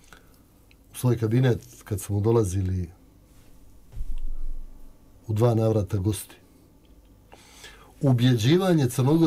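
An older man speaks calmly into a close microphone.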